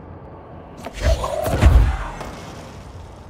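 A heavy object crashes with a booming impact.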